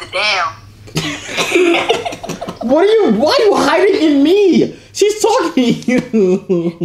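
Two young men laugh loudly together.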